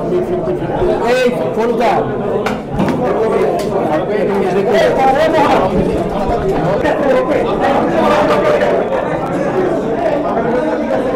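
A crowd of men talk loudly over one another nearby.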